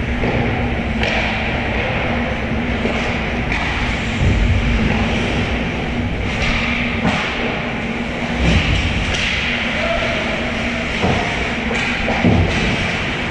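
Hockey sticks clack against the ice and a puck.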